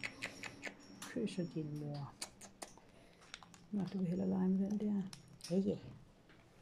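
A parrot clicks and chatters close by.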